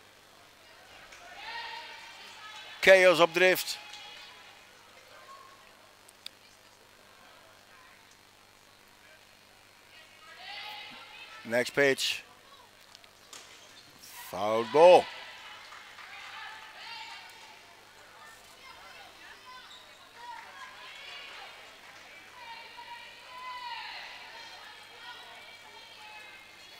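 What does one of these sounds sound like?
Young women chant and cheer from a bench in a large echoing hall.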